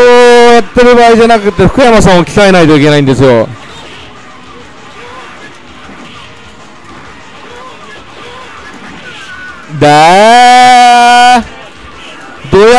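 Arcade fighting game sound effects of hits and blasts play loudly.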